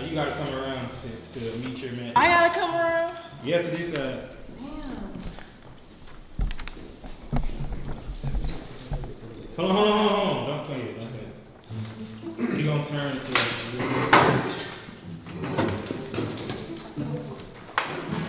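A young man talks casually nearby.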